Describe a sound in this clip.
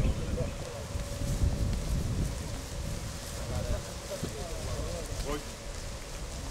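A crowd of men murmurs quietly outdoors.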